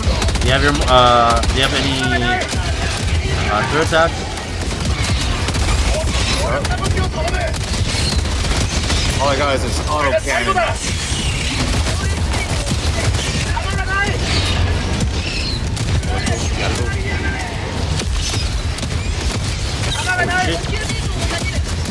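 Gunfire rattles rapidly and steadily.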